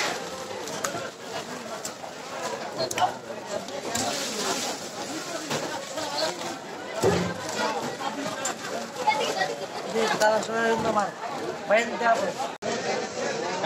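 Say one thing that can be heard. A woven plastic sack rustles and crinkles as it is handled.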